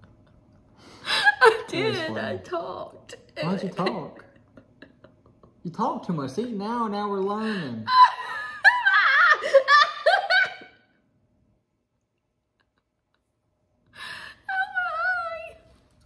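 A young woman laughs close by.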